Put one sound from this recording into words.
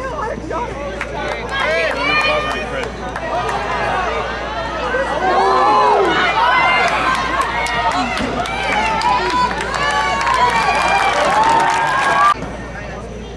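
Spectators cheer and shout loudly from the stands outdoors.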